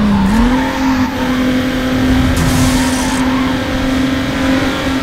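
Tyres hiss on the road.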